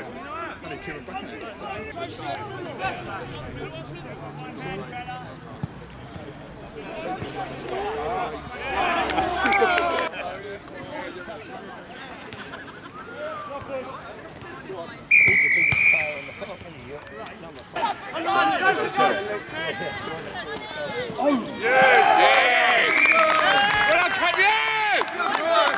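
Men shout and call out to each other across an open field outdoors.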